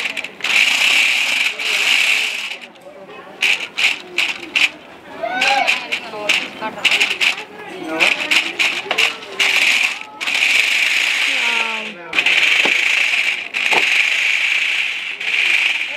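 Small plastic wheels rumble across a hard smooth surface.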